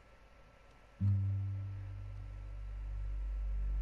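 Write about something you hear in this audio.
An acoustic guitar is strummed and played with a low, ringing tone.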